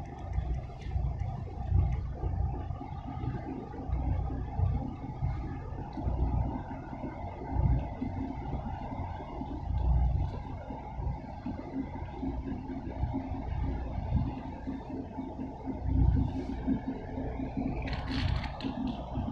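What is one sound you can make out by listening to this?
Wind buffets and rumbles in gusts outdoors.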